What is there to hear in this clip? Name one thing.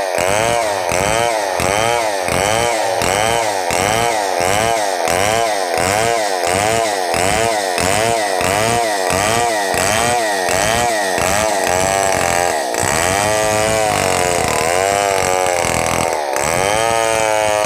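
A chainsaw roars loudly as it cuts through wood, its engine pulsing rapidly up and down.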